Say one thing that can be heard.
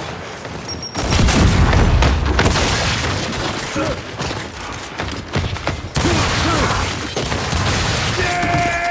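Shotgun blasts boom loudly, again and again.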